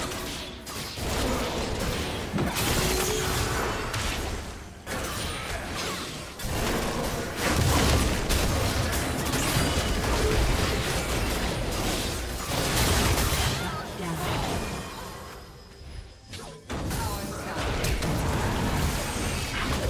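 Magic blasts whoosh and crackle as game characters fight.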